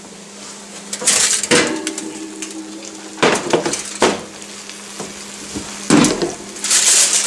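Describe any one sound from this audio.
A metal roasting pan scrapes and clanks on an oven rack.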